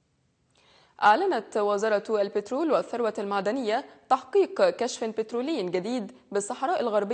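A young woman speaks calmly and clearly into a microphone, reading out.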